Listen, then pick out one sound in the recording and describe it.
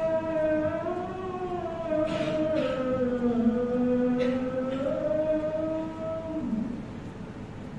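An elderly man chants a recitation in a slow, drawn-out voice through a microphone.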